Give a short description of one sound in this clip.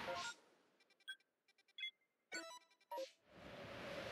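Short menu blips sound in quick succession.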